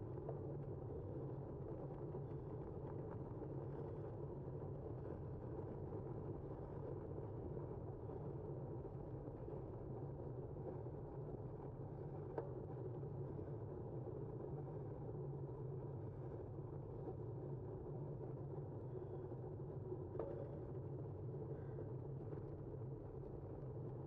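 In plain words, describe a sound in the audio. A car engine hums low and steadily.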